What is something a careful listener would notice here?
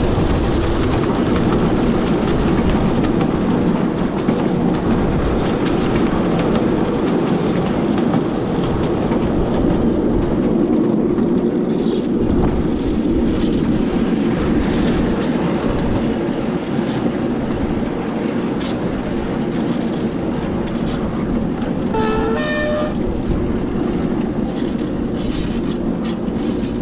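A small train engine rumbles steadily as it runs along.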